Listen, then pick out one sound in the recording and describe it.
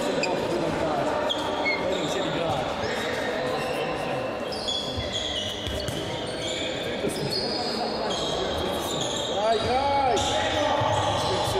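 Shoes squeak sharply on a hard court in a large echoing hall.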